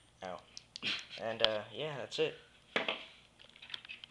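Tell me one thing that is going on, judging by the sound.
Small objects click and clatter on a wooden table.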